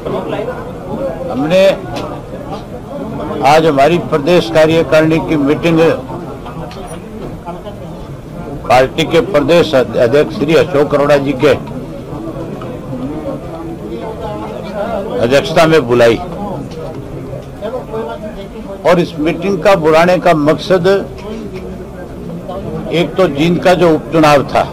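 A middle-aged man speaks forcefully into microphones, in bursts with short pauses.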